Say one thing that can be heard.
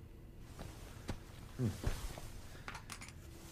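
Footsteps scuff softly on a hard floor.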